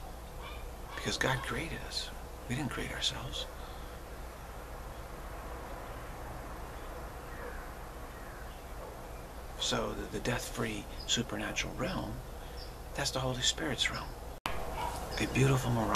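A middle-aged man speaks calmly and close to a microphone, with pauses.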